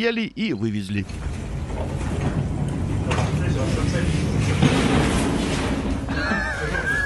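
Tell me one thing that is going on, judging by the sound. A pallet jack rolls and rattles.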